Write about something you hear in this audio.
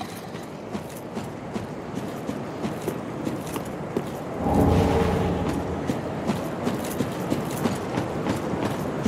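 Heavy armored footsteps crunch steadily on rough ground.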